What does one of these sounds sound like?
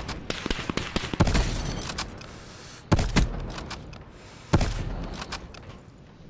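Rifle shots crack loudly with booming echoes.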